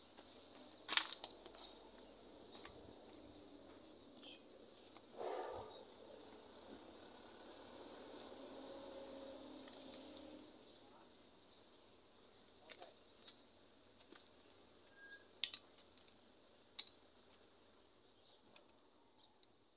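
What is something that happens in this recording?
A metal gas canister knocks and clicks as a hand handles it.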